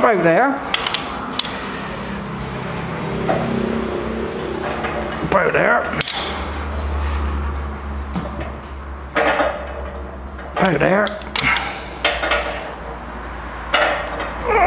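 A ratchet wrench clicks as bolts are turned.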